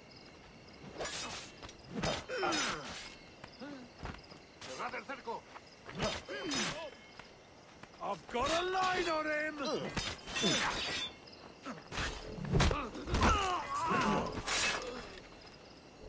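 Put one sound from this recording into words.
Swords clash and slash in a close fight.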